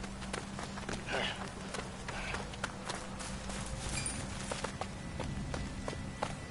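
Footsteps crunch on gravel and dry grass at a steady walking pace.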